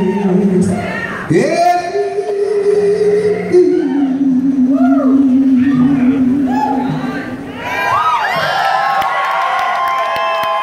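Electric guitars play a blues tune through amplifiers.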